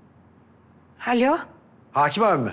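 A young woman speaks into a phone.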